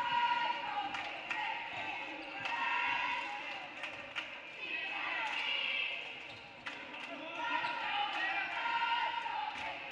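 A basketball bounces on a hard wooden floor in a large echoing gym.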